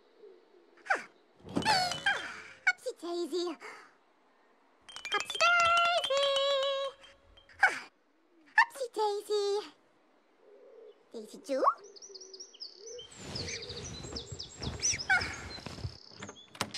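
A young woman speaks in a high, playful voice nearby.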